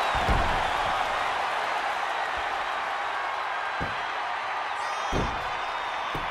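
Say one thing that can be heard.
Bodies thud heavily on a wrestling ring mat.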